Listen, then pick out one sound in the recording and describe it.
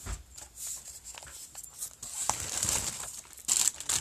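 Paper rustles in hands.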